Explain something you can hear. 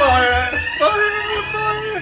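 A young person shouts excitedly close by.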